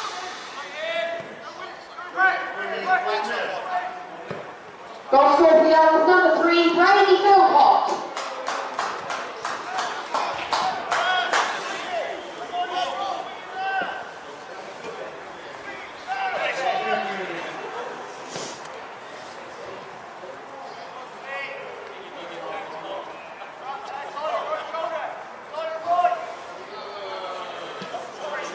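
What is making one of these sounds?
Men and women call out and shout across an open outdoor pitch.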